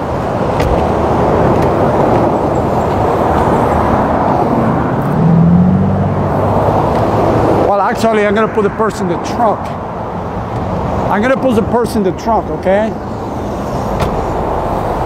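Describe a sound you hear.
Highway traffic roars past steadily outdoors.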